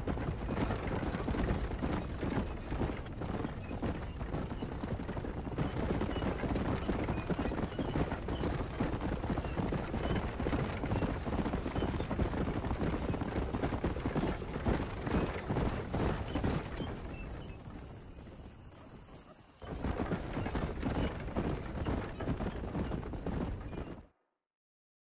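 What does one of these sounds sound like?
Wooden wagon wheels rattle and rumble over a dirt track.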